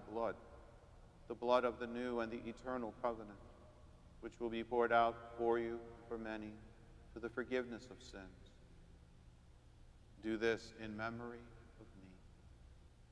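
An elderly man chants slowly into a microphone in a large echoing hall.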